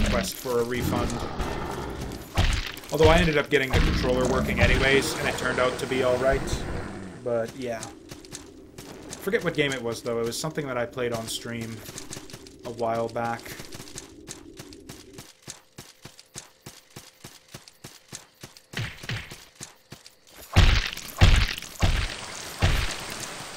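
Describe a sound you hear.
Heavy blows thud and crash as a game character fights a large creature.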